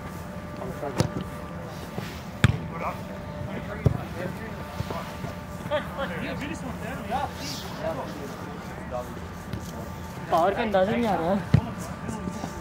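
A football thumps as players kick it.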